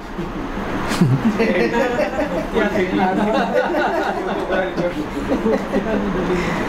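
A man laughs through a microphone.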